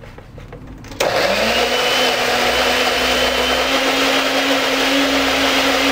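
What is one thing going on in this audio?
A blender motor whirs loudly and steadily.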